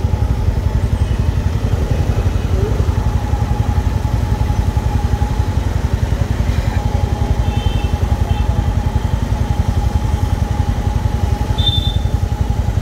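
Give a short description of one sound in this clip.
Motorcycle and auto-rickshaw engines idle close by in a rapid, steady throb.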